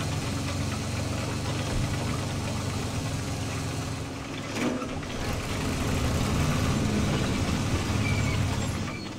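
A tank engine rumbles and clanks steadily.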